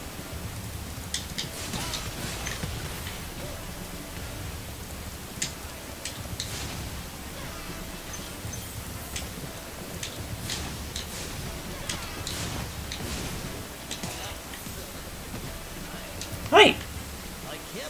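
Bright chimes ring as a game character picks up gems.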